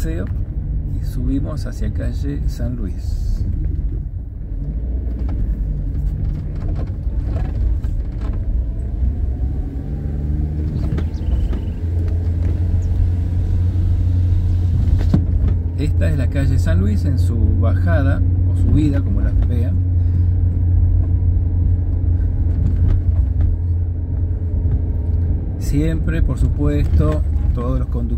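A car engine hums steadily as it climbs a hill, growing louder partway through.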